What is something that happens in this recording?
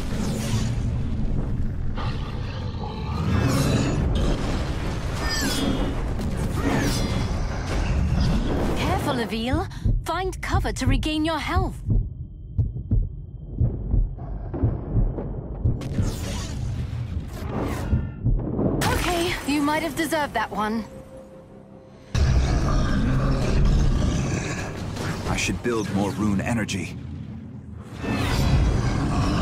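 Heavy punches and smashes thud and crash in a fight.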